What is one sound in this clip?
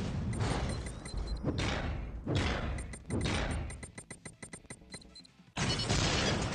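Laser beams blast and crackle loudly.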